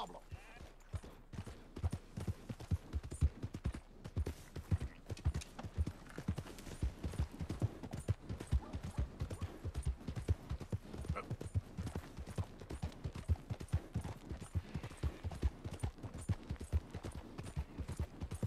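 A horse gallops with quick, steady hoofbeats on a dirt track.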